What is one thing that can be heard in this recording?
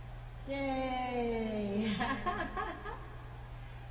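A middle-aged woman laughs.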